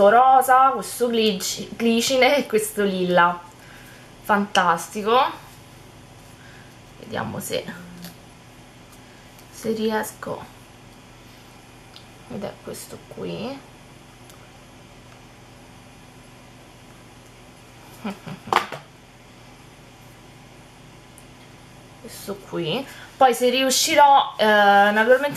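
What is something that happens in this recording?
A young woman talks calmly and closely into a microphone, with pauses.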